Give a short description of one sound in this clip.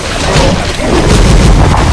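Magic blasts burst with loud booms.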